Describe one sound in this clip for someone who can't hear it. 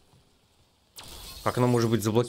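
A magical blast crackles and bursts.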